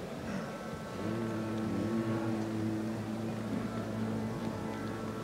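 A group of men sings together in close harmony.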